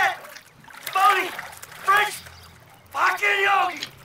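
Water splashes as a man climbs out of a pool.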